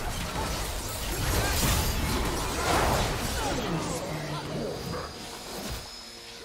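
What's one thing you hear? Video game spells crackle and burst in a busy fight.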